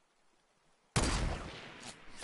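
A rifle fires a single loud shot that echoes.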